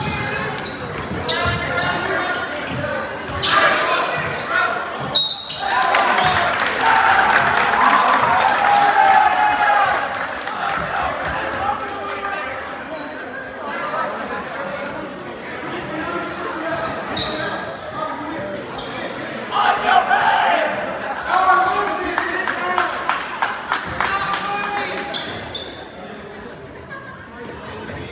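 A crowd of spectators cheers and chatters in a large echoing hall.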